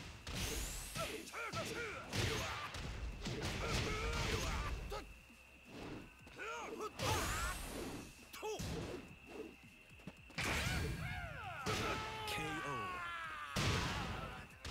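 Punches and kicks land with heavy thuds and sharp cracks.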